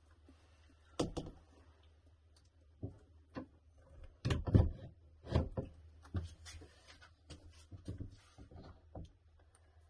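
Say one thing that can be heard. A mirror bumps and knocks against a wall.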